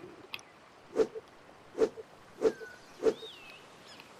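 Short menu clicks sound one after another.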